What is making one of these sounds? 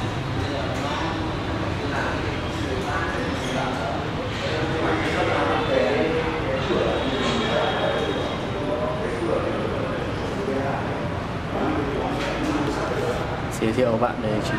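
Men talk calmly in the background of an indoor room.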